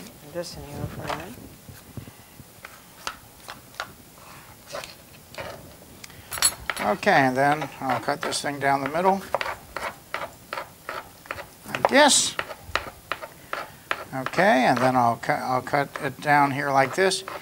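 Knives chop vegetables on a cutting board with quick, repeated taps.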